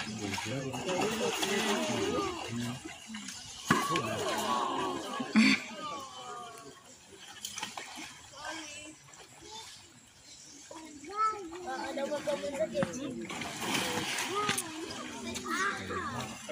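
Crocodiles thrash and splash in shallow water.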